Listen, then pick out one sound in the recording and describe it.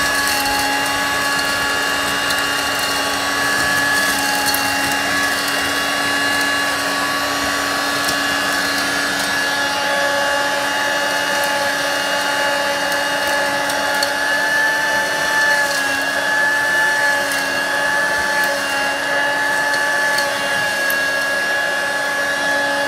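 A vacuum cleaner whines steadily at close range.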